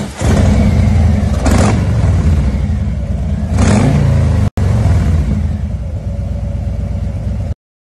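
A motorcycle engine rumbles loudly nearby.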